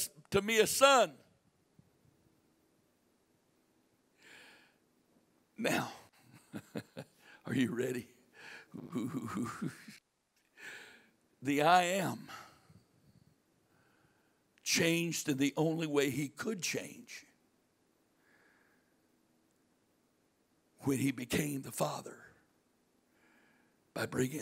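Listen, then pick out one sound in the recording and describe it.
An older man speaks calmly through a microphone, with pauses.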